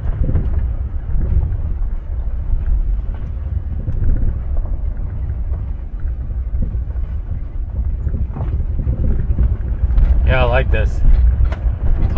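Tyres roll and crunch over a bumpy dirt track.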